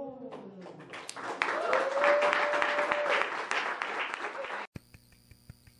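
A small audience claps.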